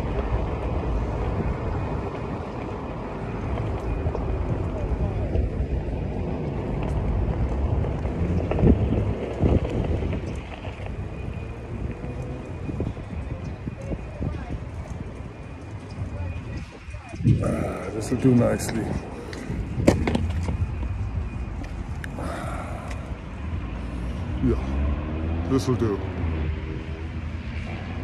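An elderly man talks close to the microphone.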